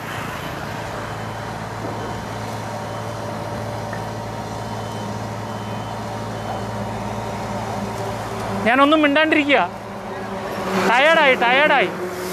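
A motorcycle engine hums past on the road.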